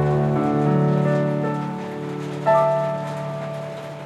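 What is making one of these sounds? A man sings softly close to a microphone.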